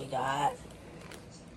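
A woman speaks briefly, close by.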